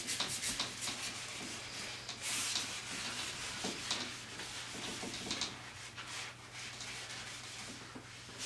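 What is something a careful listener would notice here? A whiteboard eraser rubs and squeaks against a board.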